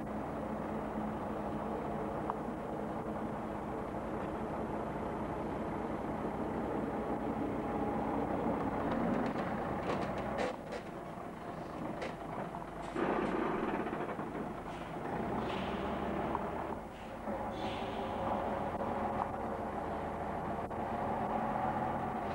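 A heavy truck engine rumbles and growls close by.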